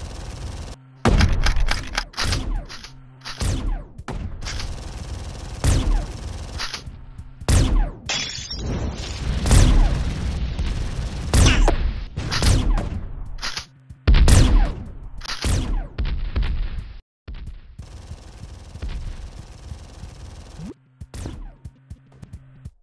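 Guns fire in loud, rapid bursts.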